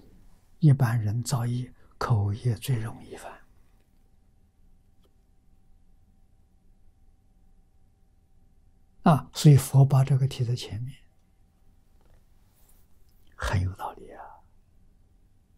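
An elderly man speaks calmly into a close microphone, with pauses.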